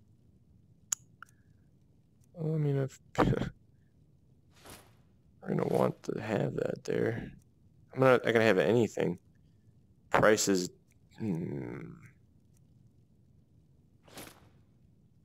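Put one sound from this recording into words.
Short menu clicks sound as items are browsed.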